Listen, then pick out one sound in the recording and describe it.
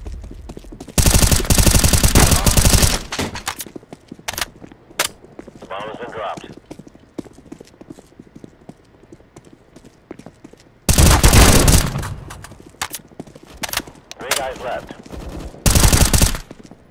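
A rifle fires loud rapid bursts at close range.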